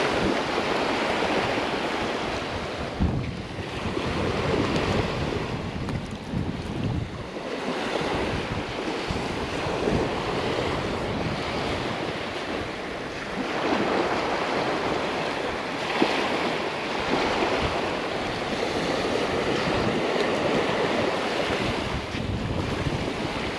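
Small waves wash and fizz onto a sandy shore.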